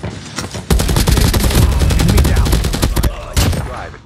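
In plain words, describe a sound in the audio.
An automatic rifle fires rapid bursts of gunshots.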